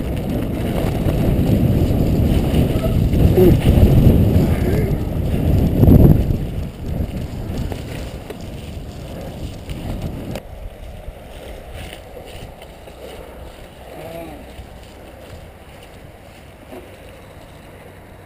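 Bicycle tyres rumble and rattle over a rough dirt trail.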